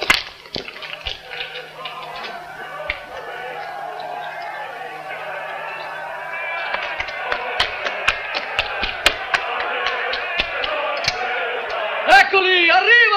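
A crowd of men murmurs and shouts in the distance, slowly growing louder.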